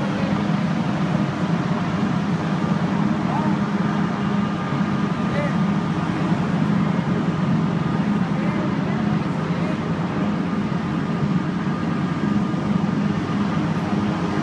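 A crowd of protesters chants and shouts outdoors.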